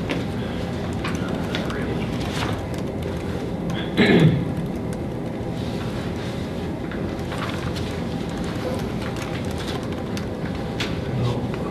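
A woman types on a laptop keyboard with soft clicks.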